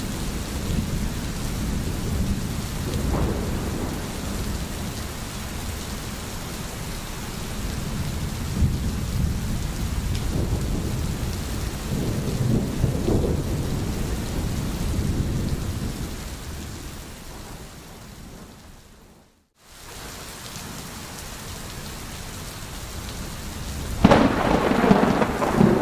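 A stream gurgles and splashes over stones.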